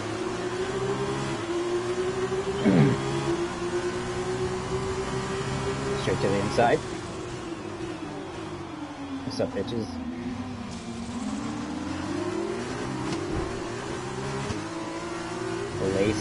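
A racing car engine whines loudly, its pitch rising and falling as it shifts gears.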